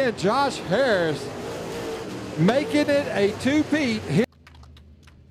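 Race car engines roar and rev loudly as the cars speed around a track.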